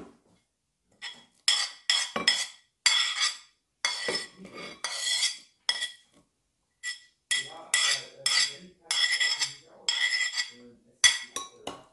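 A spoon scrapes food off a plate into a bowl.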